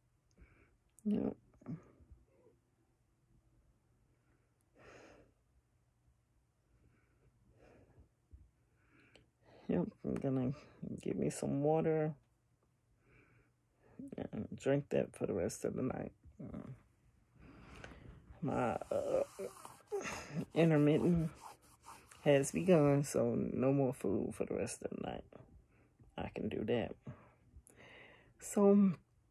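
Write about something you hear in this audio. A middle-aged woman speaks calmly and close up, with pauses.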